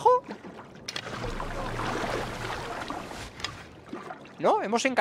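Water splashes and rushes as a swimmer breaks the surface.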